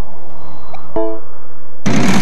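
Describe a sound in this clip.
A bright electronic chime rings once.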